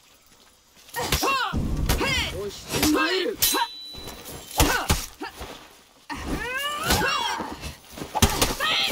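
Metal blades clash and clang in a fight.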